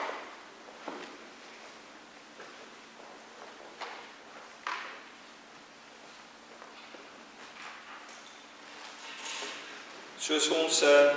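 A middle-aged man speaks calmly in an echoing hall.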